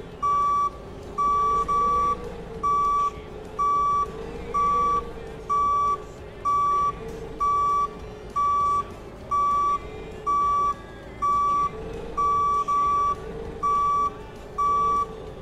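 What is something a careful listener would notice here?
A forklift's reversing alarm beeps steadily and repeatedly.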